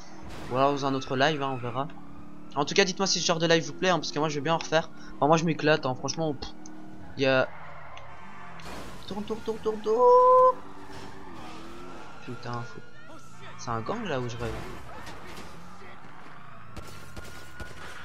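A car engine roars as a sports car speeds along a road.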